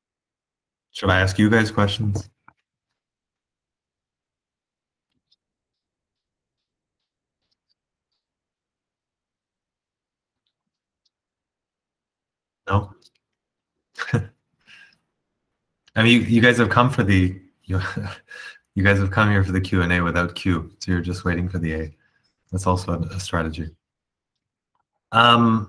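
A man speaks calmly through an online call, with long pauses.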